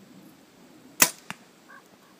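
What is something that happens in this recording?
A bowstring snaps sharply as an arrow is shot.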